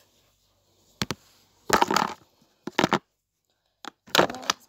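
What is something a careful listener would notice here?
Rustling and bumping sounds come as a phone is handled and moved about.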